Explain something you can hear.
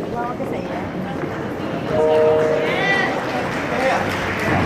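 A woman speaks through a microphone in an echoing hall.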